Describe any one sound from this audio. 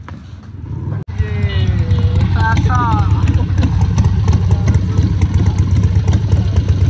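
A motorcycle engine idles with a deep, steady rumble.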